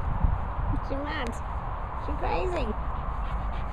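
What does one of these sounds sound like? A dog yelps and barks close by.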